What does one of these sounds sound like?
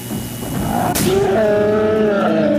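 An electric device zaps with a sharp burst.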